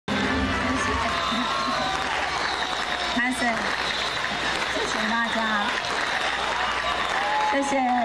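A young woman speaks through a microphone and loudspeakers, her voice emotional and halting.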